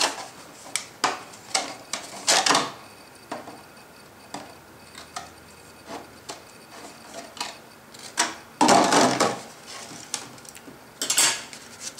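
Thin plastic crinkles and crackles as it is bent and pulled apart.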